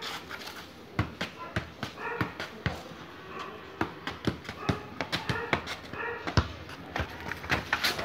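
A ball thumps repeatedly against a foot and knee.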